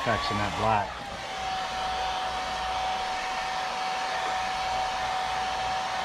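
A hair dryer blows with a steady whirring hum.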